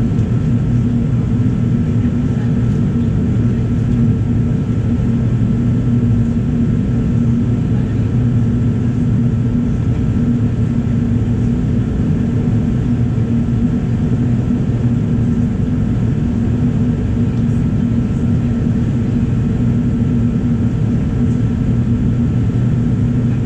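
A jet engine roars steadily and loudly, heard from inside the cabin.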